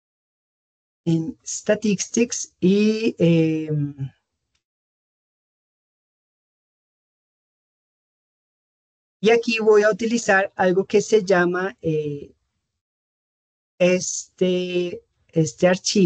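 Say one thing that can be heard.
A young man speaks calmly in bursts, heard through an online call.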